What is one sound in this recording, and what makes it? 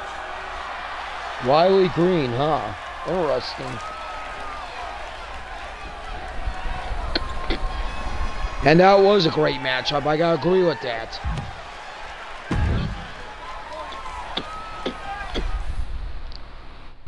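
A crowd cheers and roars in a large echoing arena.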